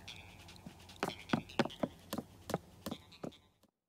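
Light footsteps tap across a wooden floor.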